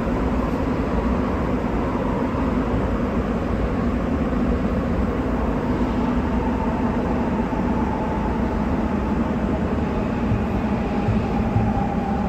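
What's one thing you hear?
Train wheels hum and squeal on the rails.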